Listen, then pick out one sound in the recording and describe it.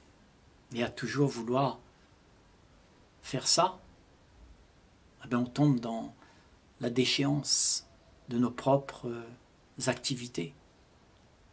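An elderly man speaks calmly and slowly, close to a microphone, with pauses.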